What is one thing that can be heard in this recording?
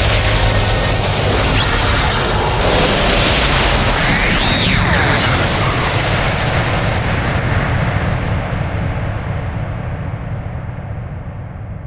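A powerful energy blast roars loudly and slowly fades.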